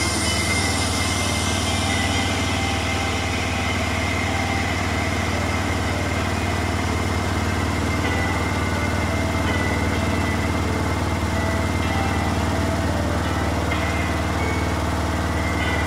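A washing machine drum hums and rumbles steadily as it turns.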